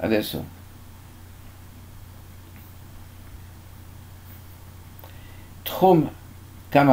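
An elderly man speaks calmly, close to a microphone, with pauses.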